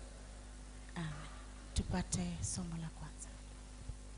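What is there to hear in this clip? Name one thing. A woman sings into a microphone.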